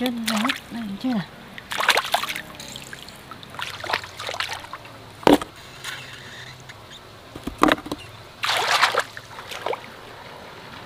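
Hands squelch and splash in shallow muddy water.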